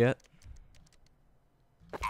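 A bomb keypad beeps as buttons are pressed.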